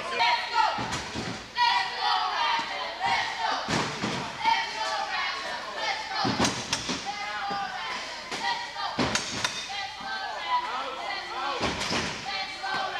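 Wheelchairs crash into each other with loud metal bangs.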